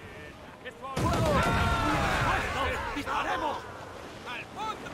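A wooden ship explodes.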